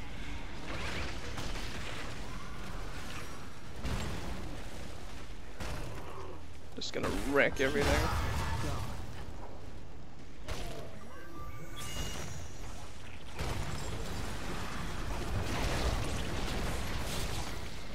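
Game spells and attacks whoosh, crackle and boom in quick bursts.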